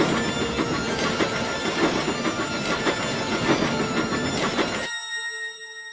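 A steam locomotive chugs and hisses loudly close by.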